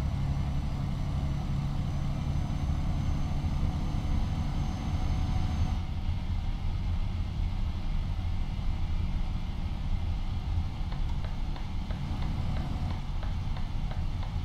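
A truck engine hums low and steady from inside the cab.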